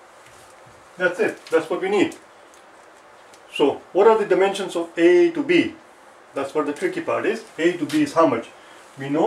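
A man speaks clearly and steadily, close by.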